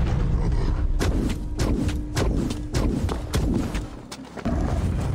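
Heavy blows land with sharp thuds during a fight.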